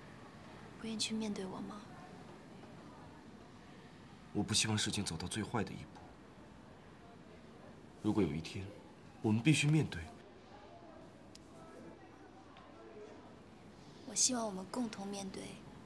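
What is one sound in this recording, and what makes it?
A young woman speaks softly and earnestly, close by.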